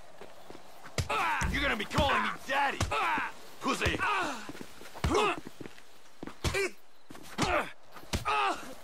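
Punches thud in a scuffle.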